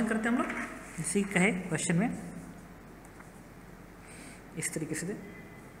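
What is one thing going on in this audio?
Paper rustles as a sheet is moved.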